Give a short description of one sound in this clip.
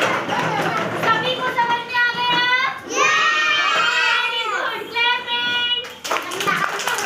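Young girls sing together in a high chant in a small echoing room.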